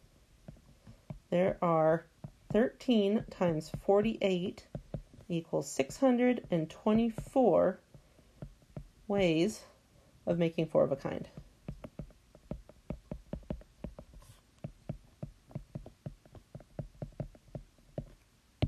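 A stylus taps and scratches quickly on a tablet.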